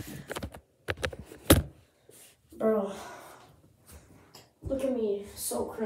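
Footsteps thump as a boy steps into a bathtub.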